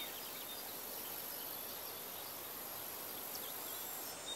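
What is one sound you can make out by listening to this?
Tall grass rustles as a person walks through it.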